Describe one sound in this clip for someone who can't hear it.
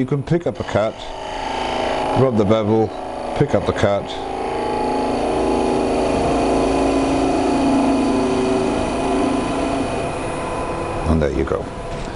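A chisel scrapes and cuts into spinning wood.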